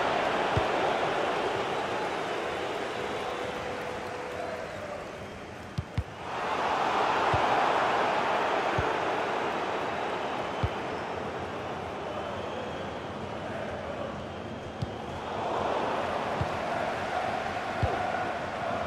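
A football is kicked with short, dull thuds.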